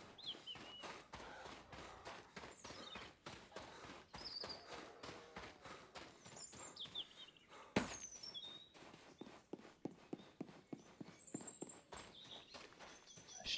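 Footsteps crunch quickly over gravel and dirt.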